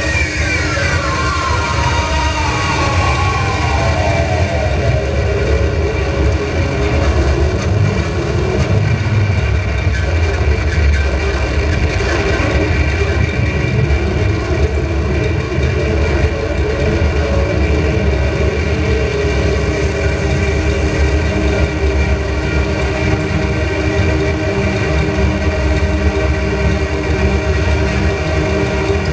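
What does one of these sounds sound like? Dense electronic music drones and hums loudly through the whole stretch.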